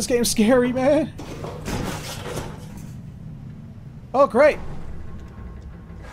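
Boots clank on a metal ladder.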